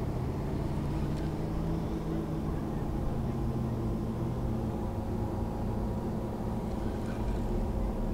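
A fishing reel clicks as it is wound.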